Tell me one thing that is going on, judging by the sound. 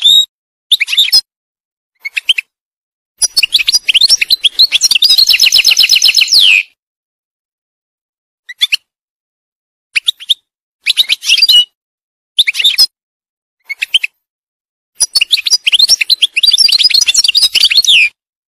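A goldfinch sings close by in bursts of bright, fast twittering trills.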